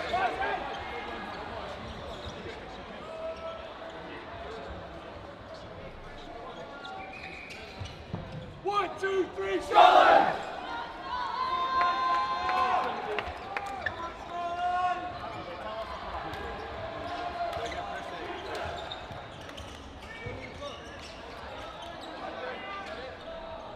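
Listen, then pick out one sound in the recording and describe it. Several young men talk and call out in a large echoing hall.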